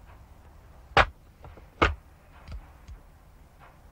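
A telephone handset knocks and clicks against a desk.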